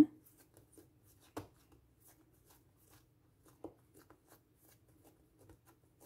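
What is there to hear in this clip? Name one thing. Hands softly pat and press soft dough.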